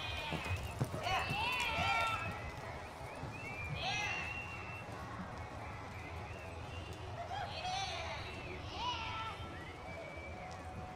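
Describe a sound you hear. A horse gallops across soft dirt, hooves thudding.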